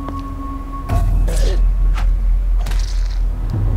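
Punches land with sharp thuds in a fight.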